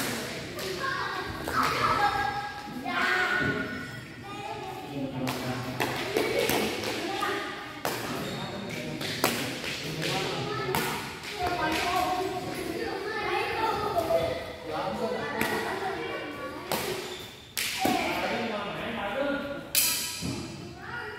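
Men talk and call out across the hall.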